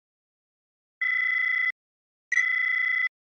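An electronic menu tone beeps twice.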